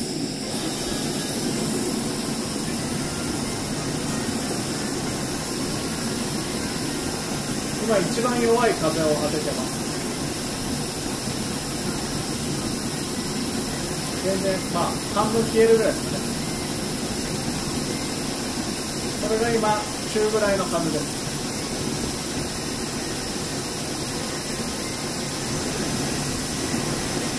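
A gas burner hisses and roars steadily.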